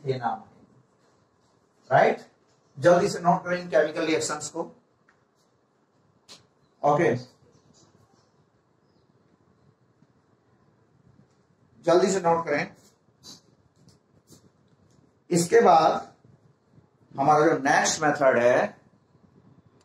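A man speaks calmly and clearly, pausing between phrases.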